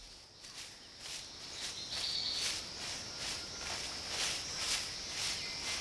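A bird scratches and rustles through dry leaves.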